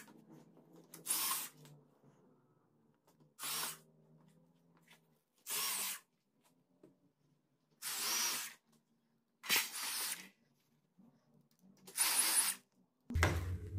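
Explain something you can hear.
A power screwdriver whirs in short, sharp bursts.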